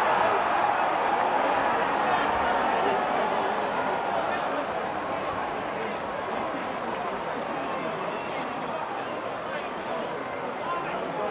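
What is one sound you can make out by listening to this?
A stadium crowd cheers loudly, then the noise slowly dies down.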